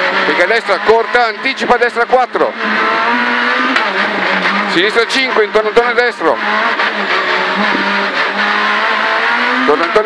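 A rally car engine roars steadily at high revs inside the cabin.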